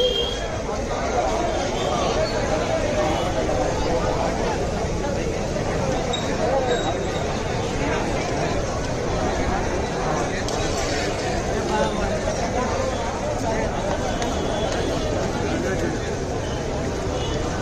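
A large crowd chatters and shouts loudly outdoors.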